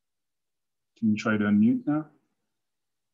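A man speaks briefly through an online call.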